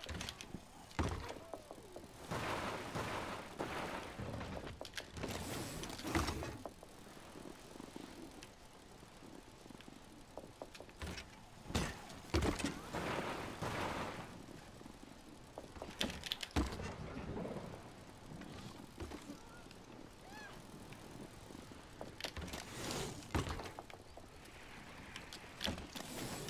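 A bicycle lands hard with a thud.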